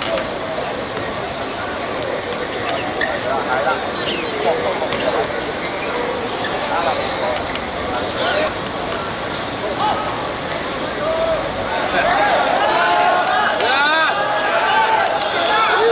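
A crowd of spectators murmurs and shouts outdoors.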